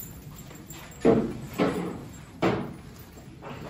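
Cows moo nearby.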